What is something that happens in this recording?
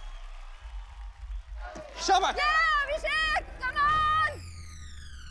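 A woman exclaims loudly with excitement.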